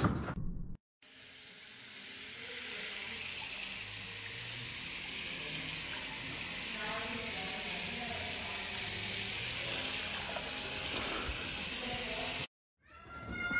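Water sprays steadily from a hose, splashing.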